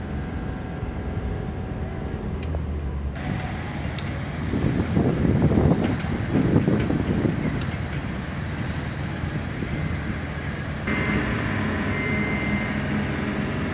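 A low rumble of machinery hums steadily outdoors.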